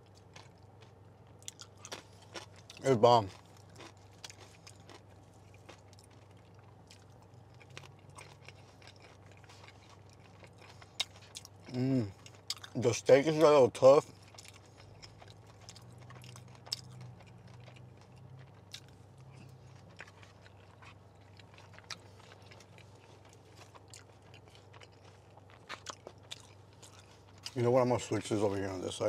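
A man chews crisp lettuce with wet, crunching sounds close to a microphone.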